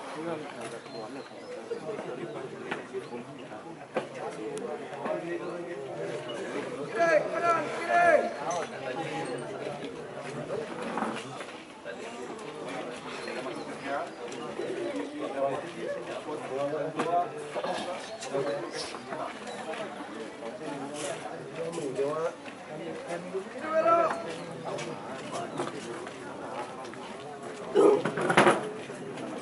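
A squad of cadets marches in step on asphalt outdoors, boots stamping together.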